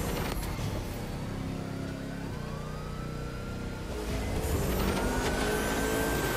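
A sports car engine roars at high revs, rising in pitch as it speeds up.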